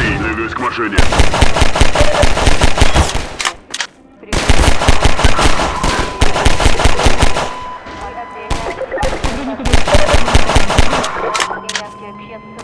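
A pistol fires rapid shots.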